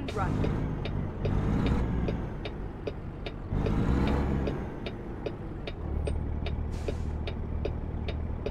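A truck engine rumbles low and steady, rising and falling as it pulls through a turn.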